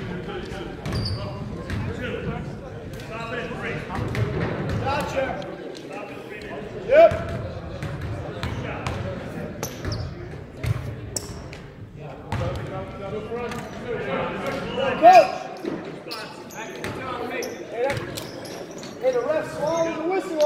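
Young men talk and call out across the gym.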